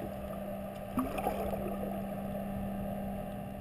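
Water splashes and bubbles close by.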